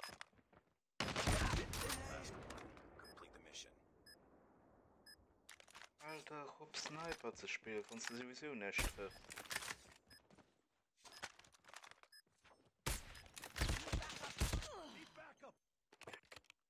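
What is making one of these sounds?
A rifle fires loud shots that echo away.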